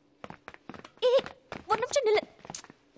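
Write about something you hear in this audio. A young man shouts.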